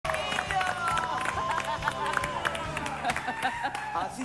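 Several men clap their hands.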